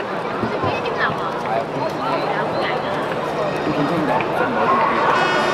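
A large crowd of football supporters chatters and cheers in an open stadium.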